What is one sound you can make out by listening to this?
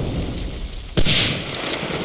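A rifle fires a single loud shot.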